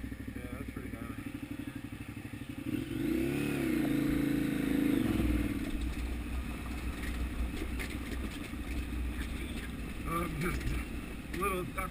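A motorcycle engine chugs and revs.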